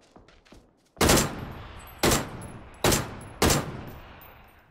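Rifle shots crack loudly, several times, each with a ringing echo.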